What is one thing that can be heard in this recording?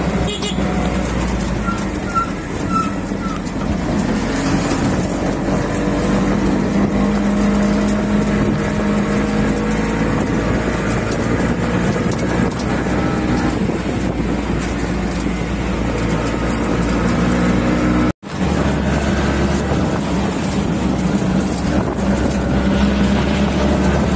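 An auto-rickshaw engine drones and rattles steadily while driving.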